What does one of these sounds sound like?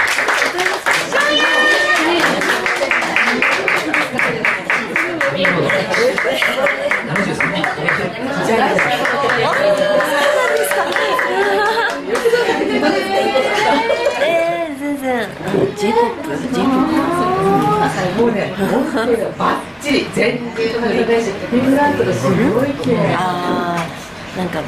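Women laugh and chatter nearby.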